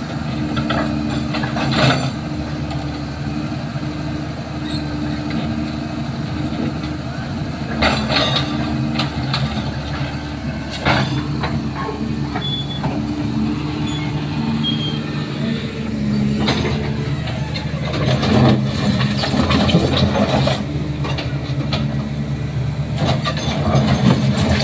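A diesel excavator engine rumbles steadily close by.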